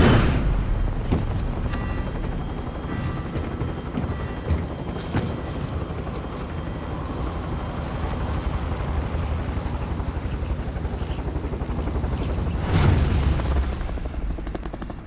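A helicopter's rotors and engine roar loudly nearby.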